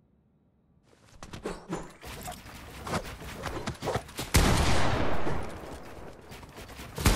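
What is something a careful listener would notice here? Wooden walls are built with quick clattering thuds.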